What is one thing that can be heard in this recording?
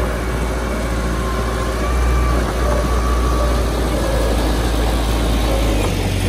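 Bulldozer tracks clank and squeal over dirt.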